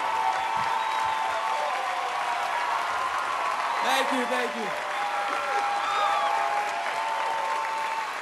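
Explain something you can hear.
A man speaks into a microphone over a loudspeaker.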